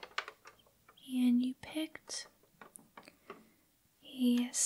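A young woman whispers softly, close to a microphone.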